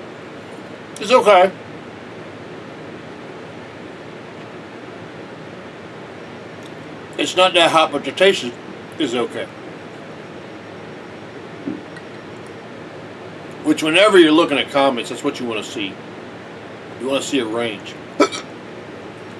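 An elderly man speaks calmly and close by, in short bursts.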